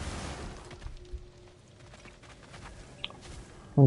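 Heavy footsteps crunch on the ground.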